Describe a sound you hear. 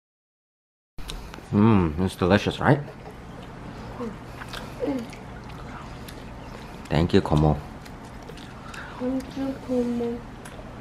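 Children slurp spaghetti.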